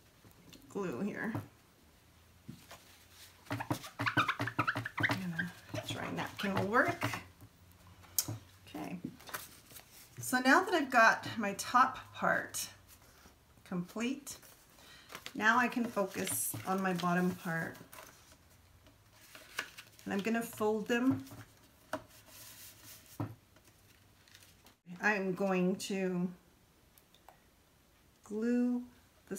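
A woman speaks calmly, explaining as she works.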